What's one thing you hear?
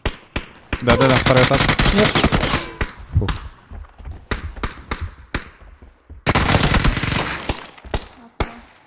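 Pistol shots ring out in rapid bursts.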